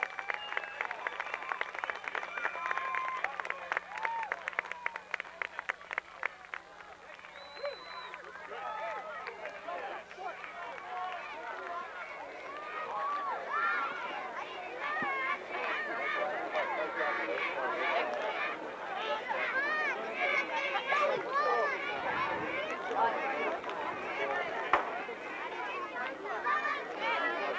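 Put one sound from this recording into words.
Young boys chatter and shout with excitement nearby.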